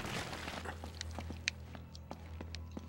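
Footsteps patter on a stone floor.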